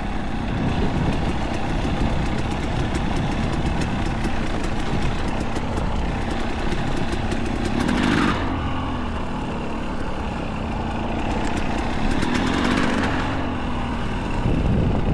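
A dirt bike engine putters close by and revs up now and then.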